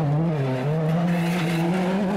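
Gravel sprays and rattles under spinning tyres.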